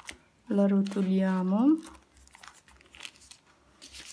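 Fabric rustles softly as a hand smooths it.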